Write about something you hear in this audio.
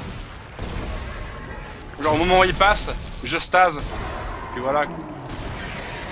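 A flamethrower roars in a video game.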